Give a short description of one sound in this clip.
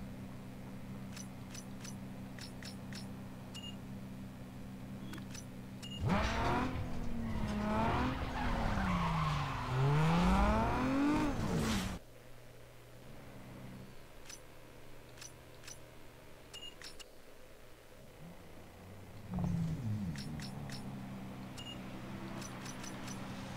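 Short electronic beeps sound as menu options are picked.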